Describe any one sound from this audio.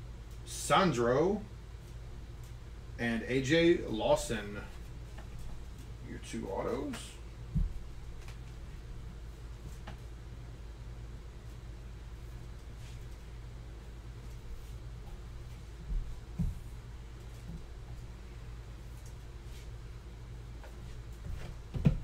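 Cards rustle and click as they are handled.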